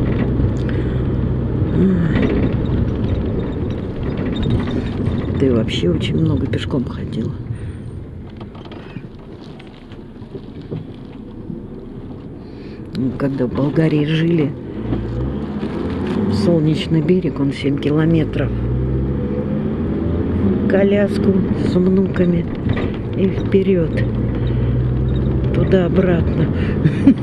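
A car engine hums steadily as the car drives along a street.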